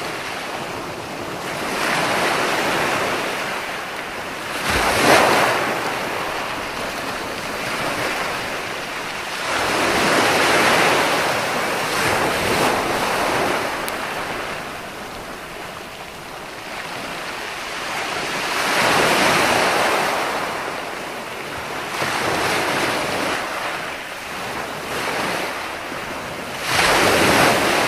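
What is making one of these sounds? Waves crash and wash onto a beach in swelling surges.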